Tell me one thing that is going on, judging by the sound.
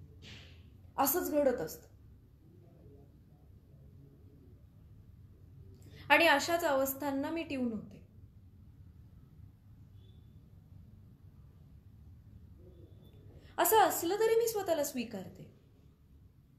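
A young woman speaks calmly in drawn-out phrases, close by.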